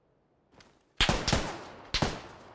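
Rifle shots crack loudly, twice.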